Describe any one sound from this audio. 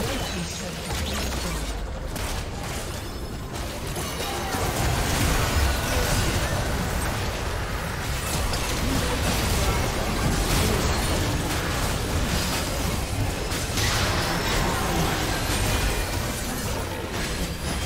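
Video game spell effects crackle, whoosh and boom in a hectic battle.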